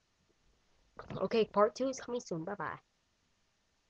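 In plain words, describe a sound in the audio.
A young boy speaks with animation close to the microphone.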